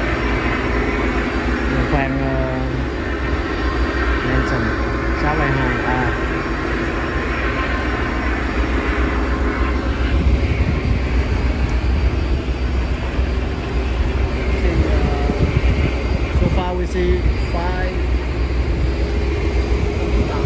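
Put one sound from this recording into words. Wind blows across the microphone.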